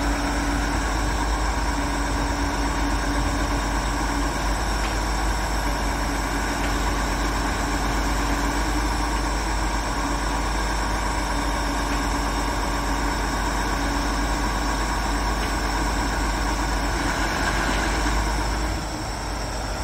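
A crane's hydraulics whine steadily as the boom moves.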